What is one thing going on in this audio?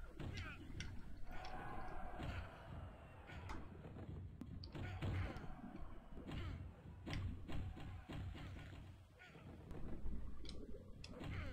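Wrestling blows thud in a video game.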